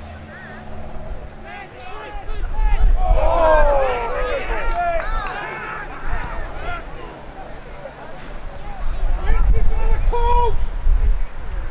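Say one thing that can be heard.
Young men shout across an open field.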